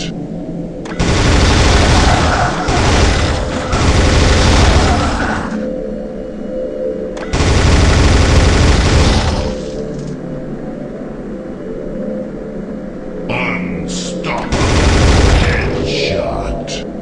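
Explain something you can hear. A heavy machine gun fires in loud, rapid bursts.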